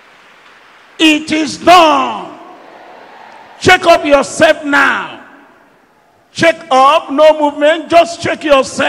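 A middle-aged man preaches forcefully through a microphone and loudspeakers.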